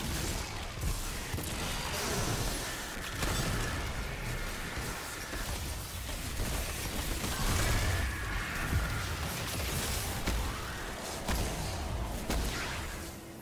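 Gunshots fire rapidly in a video game.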